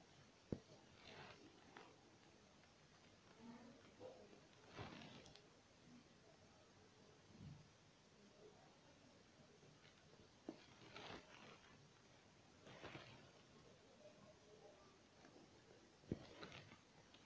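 Thread draws through fabric with soft, brief swishes.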